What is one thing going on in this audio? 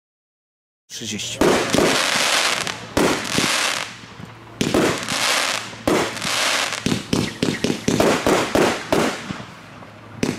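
Sparks crackle and fizz after each burst.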